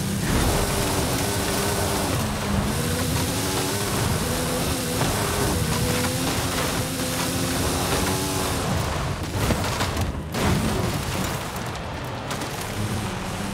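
Tyres crunch and skid over loose gravel and dirt.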